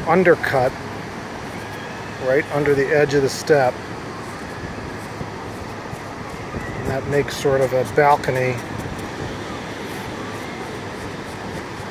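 A plastic scoop scrapes gently against packed sand.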